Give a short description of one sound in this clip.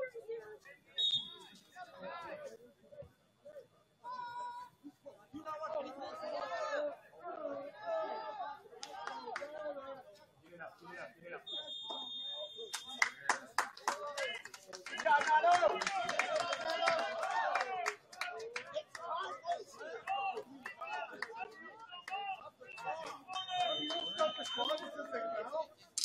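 A referee's whistle blows in short, sharp blasts.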